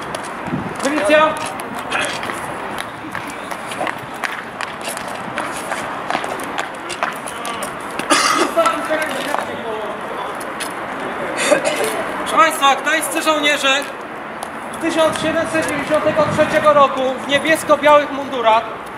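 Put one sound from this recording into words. A man shouts commands outdoors.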